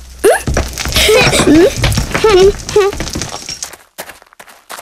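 Rocks tumble and clatter in a jumble of knocks.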